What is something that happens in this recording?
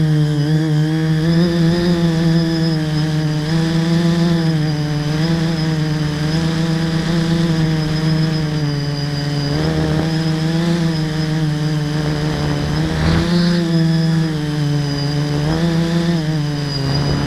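Wind rushes past as the vehicle rides along.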